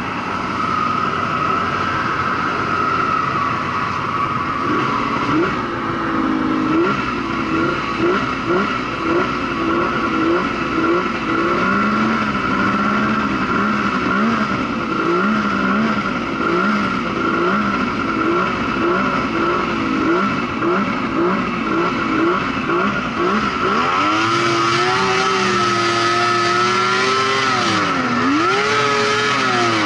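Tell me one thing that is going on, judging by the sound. A snowmobile engine roars close by, revving up and down again and again.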